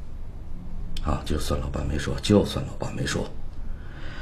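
A middle-aged man speaks in a strained, pleading voice.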